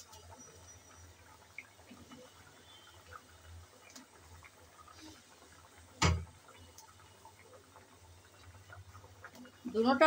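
A thick sauce bubbles and simmers in a pan.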